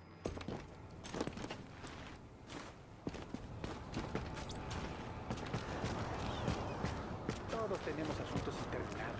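Footsteps thud and crunch on wood.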